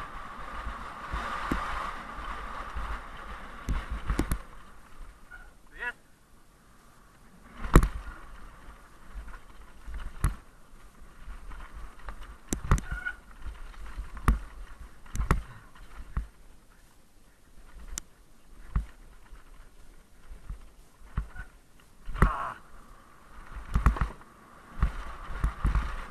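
Bike tyres rattle and thud over a rough dirt trail.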